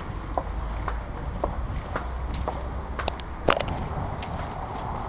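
A van drives slowly along a street.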